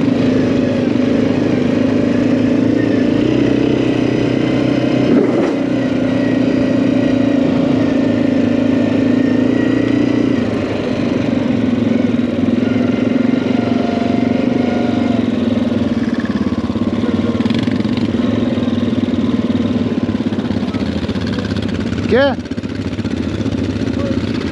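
A quad bike engine drones steadily up close.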